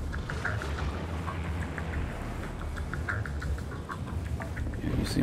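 Footsteps clank quickly on metal stairs.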